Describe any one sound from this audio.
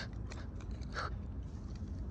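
A plastic toy clicks as a hand moves it.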